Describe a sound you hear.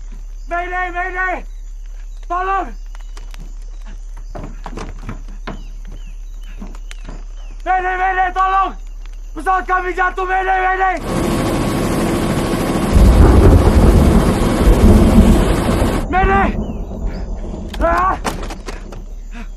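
A man shouts out loudly.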